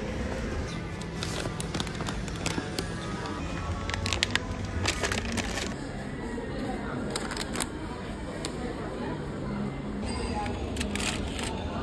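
Plastic snack packaging crinkles and rustles as it is handled.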